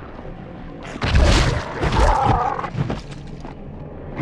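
A magical blast bursts with a loud whoosh and crackle.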